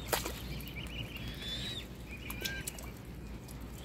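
A swan splashes in shallow water.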